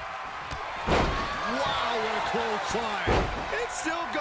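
A heavy body slams onto a wrestling mat with a thud.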